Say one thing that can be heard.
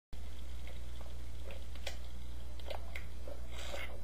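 A man gulps down a drink.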